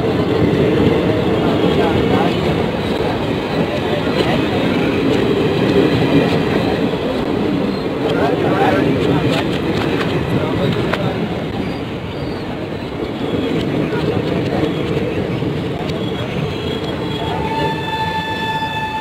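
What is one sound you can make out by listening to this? A passenger train rumbles and clatters past close by.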